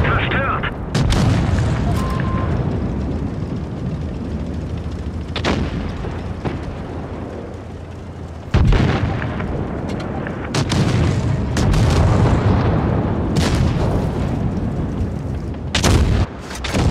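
Explosions crash nearby.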